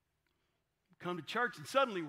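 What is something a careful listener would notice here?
A middle-aged man speaks with expression into a microphone after a short silence.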